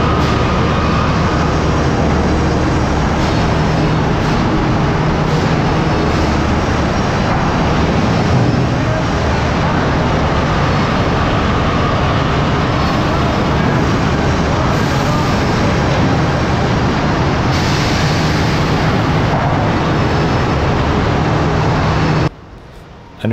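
Conveyor chains clatter steadily.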